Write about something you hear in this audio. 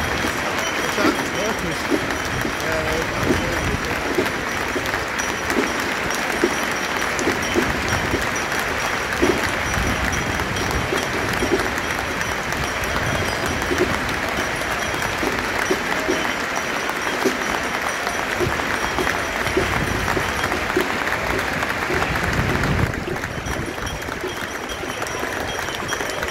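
A large stadium crowd murmurs and claps in the open air.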